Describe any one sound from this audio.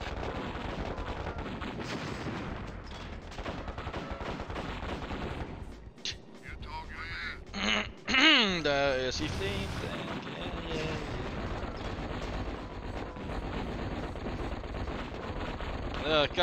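Explosions boom in short bursts.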